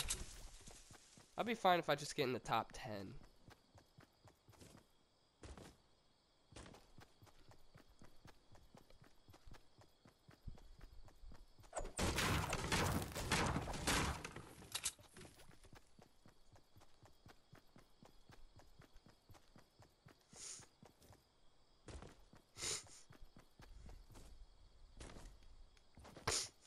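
Footsteps run quickly over grass.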